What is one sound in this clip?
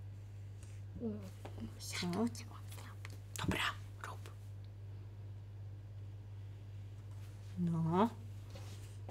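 A woman speaks in short bursts nearby.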